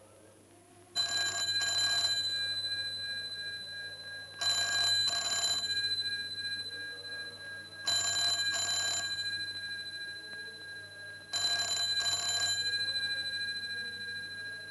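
A telephone rings loudly in repeated double bursts.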